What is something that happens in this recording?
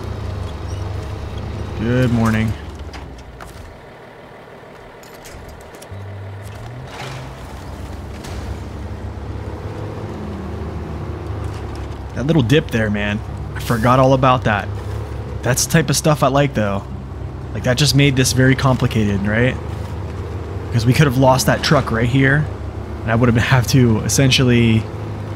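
A heavy truck engine rumbles and strains.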